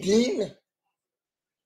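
A man speaks briefly with animation through a microphone.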